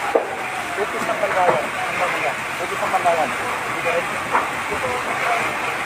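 Water jets spray and hiss steadily from fire hoses.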